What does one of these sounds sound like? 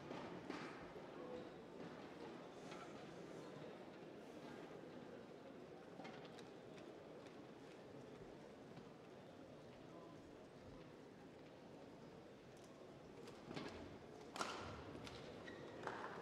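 A low murmur of voices fills a large echoing hall.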